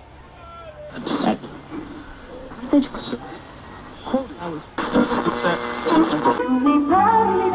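A radio crackles and whistles as it is tuned.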